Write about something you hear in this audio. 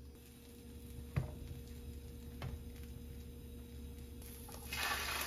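Bread sizzles in a frying pan.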